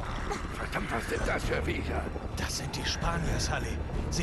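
A middle-aged man speaks tensely.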